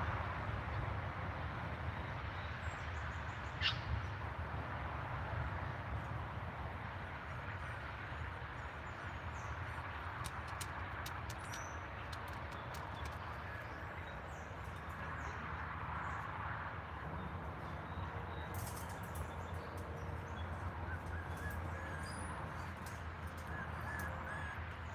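Small puppies yip and squeak softly.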